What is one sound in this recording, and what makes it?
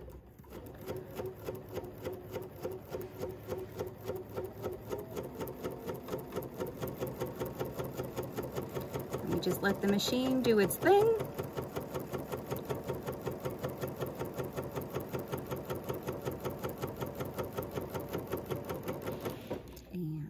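A sewing machine stitches steadily with a fast, even rhythm.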